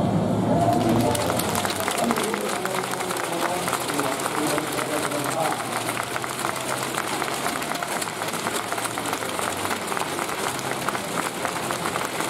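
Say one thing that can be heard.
A crowd claps steadily in a large echoing hall.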